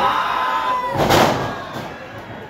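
A wrestler slams onto the ring mat with a loud thud.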